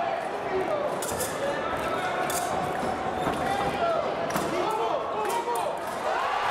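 Fencing blades clash and scrape sharply.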